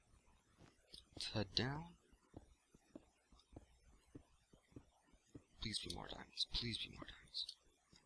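Blocks crunch and crumble as they are dug with a pick.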